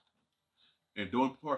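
A man speaks into a close microphone.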